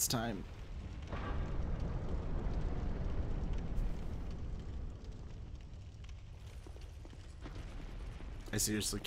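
A heavy stone door grinds and rumbles slowly open.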